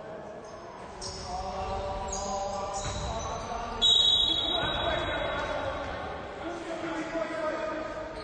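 Young men shout to each other across the court.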